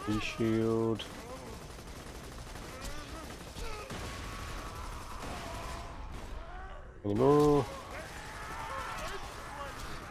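Gunfire crackles in quick bursts.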